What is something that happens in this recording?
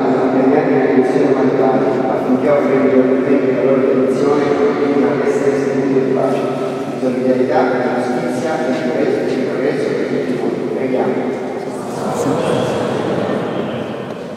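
A man reads out over a loudspeaker in a large echoing hall.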